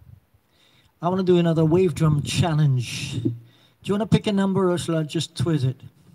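An elderly man speaks into a microphone close by.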